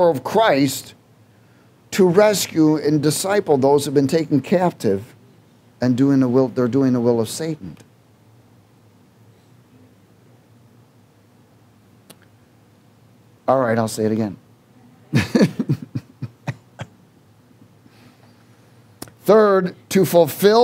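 A middle-aged man speaks calmly through a microphone, pausing often.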